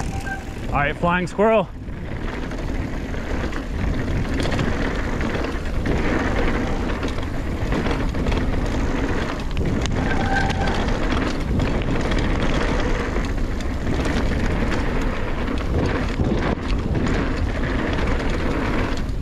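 Bicycle tyres crunch and rumble steadily over a dirt trail.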